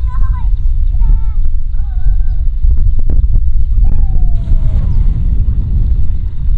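Water gushes from a pipe and splashes into a pond.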